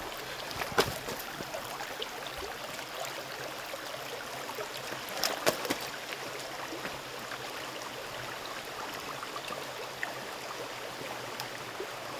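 Footsteps crunch on gravel and dry leaves.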